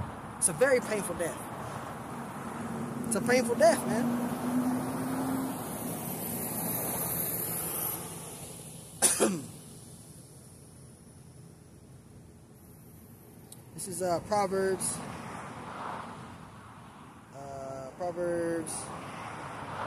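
A man talks casually close by, outdoors.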